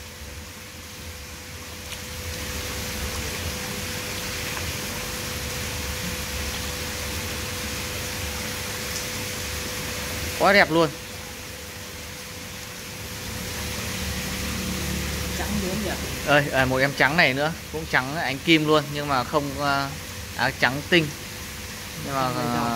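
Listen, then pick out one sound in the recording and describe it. Water splashes and laps around a hand moving through it.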